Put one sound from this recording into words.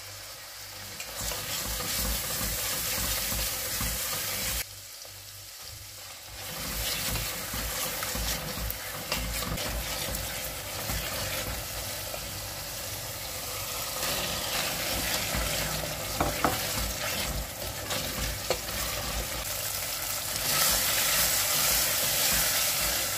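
Food sizzles and crackles in a hot pot.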